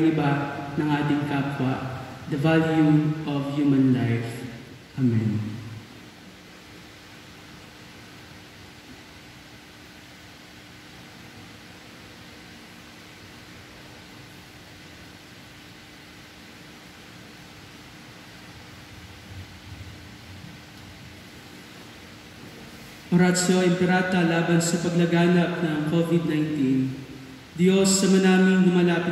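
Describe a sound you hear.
A man chants in a steady singing voice through a microphone, echoing in a large hall.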